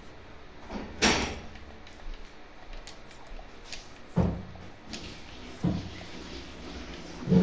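Building pieces snap into place with heavy thuds.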